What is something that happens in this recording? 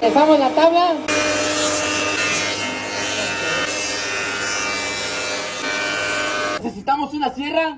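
A table saw whines while cutting through a board.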